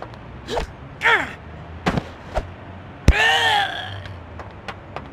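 A man grunts and cries out in pain.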